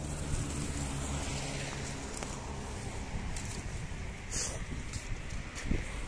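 Bicycle tyres roll over paving stones nearby.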